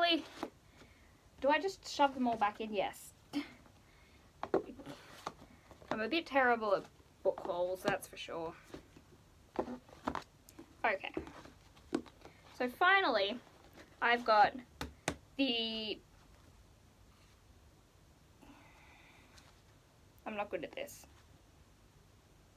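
Books knock and rustle as they are handled.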